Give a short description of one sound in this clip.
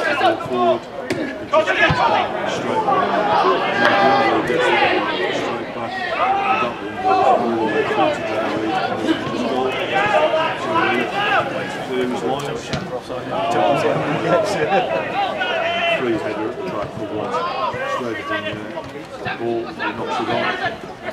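Young men shout to each other across an open pitch.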